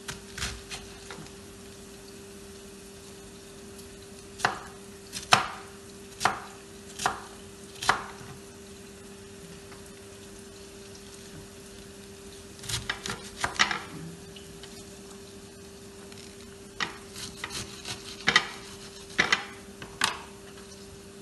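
A knife chops through cabbage onto a cutting board with sharp knocks.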